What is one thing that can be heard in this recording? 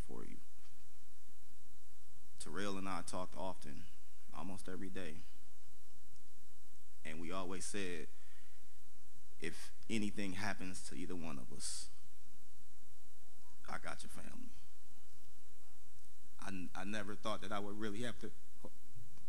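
A man speaks slowly into a microphone, with long pauses between phrases.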